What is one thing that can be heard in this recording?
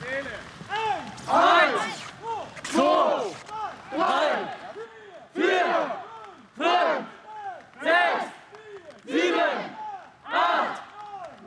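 A young man groans loudly with effort in a steady rhythm, close by.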